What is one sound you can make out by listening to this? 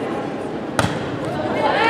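A volleyball is struck with a sharp smack in a large echoing gym.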